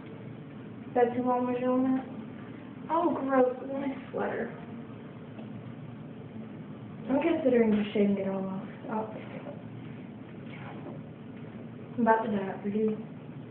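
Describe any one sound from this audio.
A woman speaks in short bursts close to the microphone.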